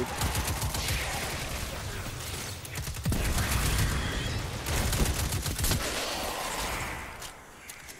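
Automatic rifle fire rattles in a video game.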